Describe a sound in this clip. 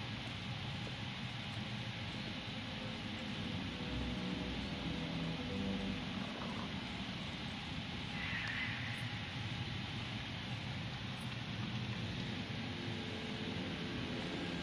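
A torch flame crackles softly.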